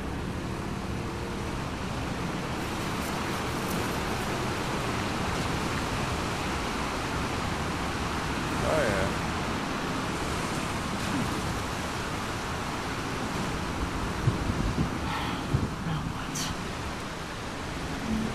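Water rushes and churns steadily around a boat.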